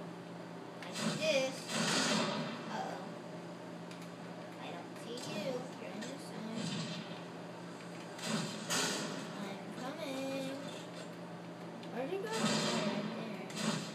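Video game gunfire and explosions sound through a television speaker.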